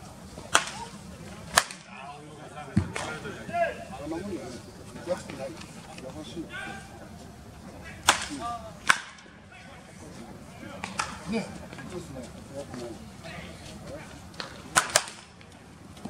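A baseball bat cracks against a ball outdoors.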